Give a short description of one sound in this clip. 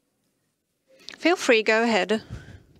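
A second woman speaks over an online call.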